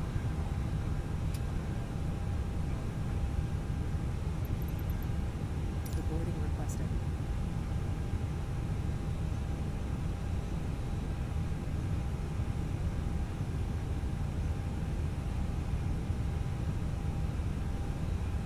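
A jet aircraft's engines hum low and steady.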